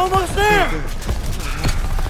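A man shouts urgently close by.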